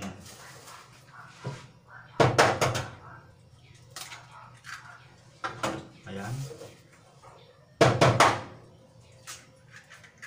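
An egg cracks against a hard edge.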